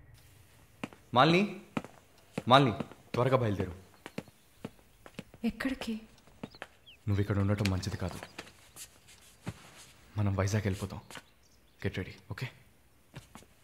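A young man speaks with emotion, close by.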